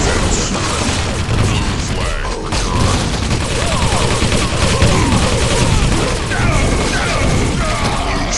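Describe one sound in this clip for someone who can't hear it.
Weapons fire in sharp blasts and zaps.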